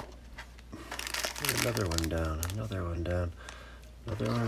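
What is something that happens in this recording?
A small plastic bag crinkles in a hand.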